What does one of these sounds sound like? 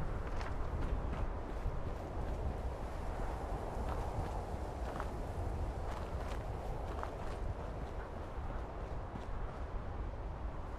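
Footsteps crunch on gravel at a steady walking pace.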